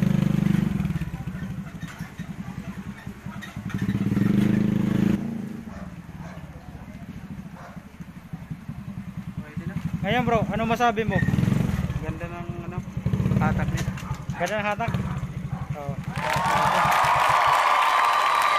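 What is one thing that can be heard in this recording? A motorcycle engine putters and idles nearby.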